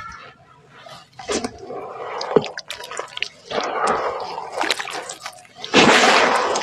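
Hands squish and slosh through thick wet mud in water.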